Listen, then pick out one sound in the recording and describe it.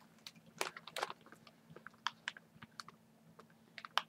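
A cellophane bag crinkles as it is handled.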